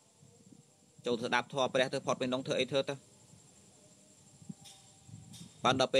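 A young man speaks calmly and close to the microphone.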